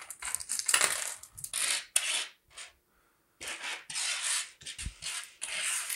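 Coins scrape and click as a hand slides them across a table.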